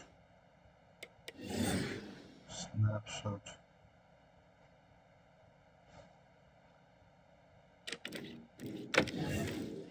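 Short electronic whooshes and clicks sound as a game menu changes.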